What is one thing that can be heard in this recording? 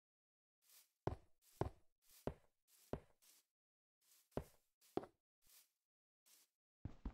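Stone blocks are set down with short, dull thuds.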